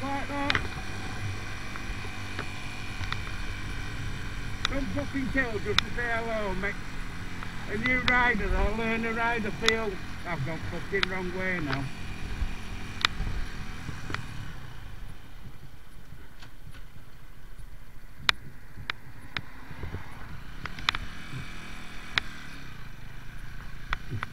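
A motorcycle engine hums steadily, rising and falling in pitch as it changes gear.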